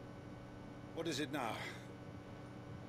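A man speaks a short question calmly, close by.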